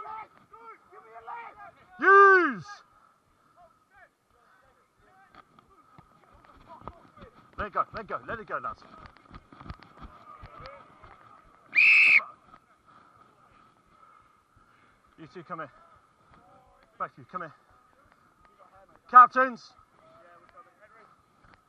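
Men shout loudly across an open field.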